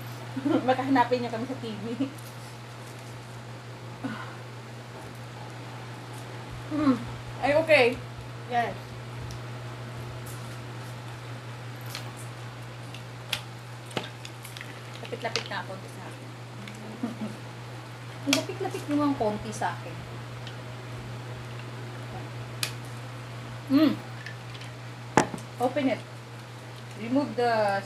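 Shells crack and crunch as people eat with their hands.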